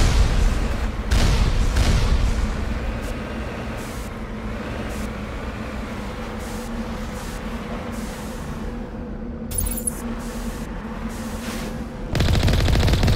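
A heavy vehicle's engine hums steadily as it drives.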